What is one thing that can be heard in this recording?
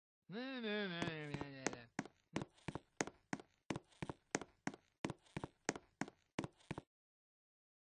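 Short game clicks tick in quick succession.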